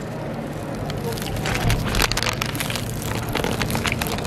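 Crusty pastry tears apart.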